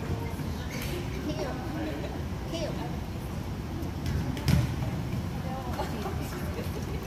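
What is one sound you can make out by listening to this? A man talks calmly in an echoing gym.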